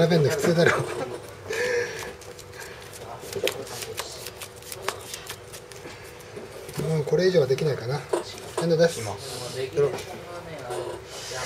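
Playing cards flick and shuffle softly in hands.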